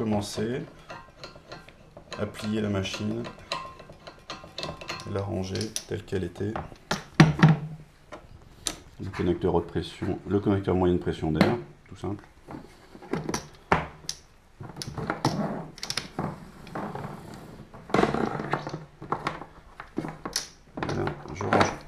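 Metal fittings click and knock as they are handled.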